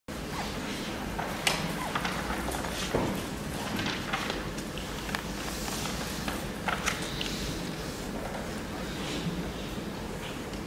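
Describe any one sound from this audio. A violin plays.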